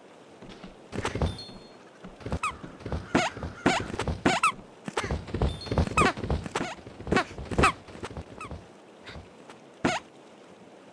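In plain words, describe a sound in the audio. A sword swishes through the air in quick swings.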